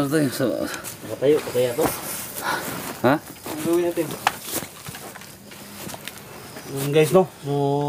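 Men talk and shout loudly close by.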